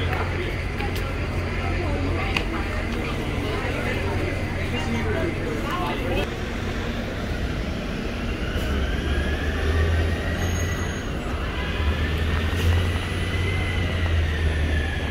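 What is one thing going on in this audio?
Traffic rumbles past steadily.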